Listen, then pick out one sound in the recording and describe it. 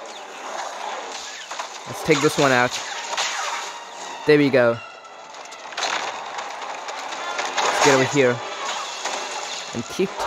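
A lightsaber hums and clashes.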